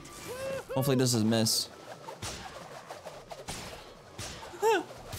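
Cartoon whooshes and slap sounds ring out as a character attacks.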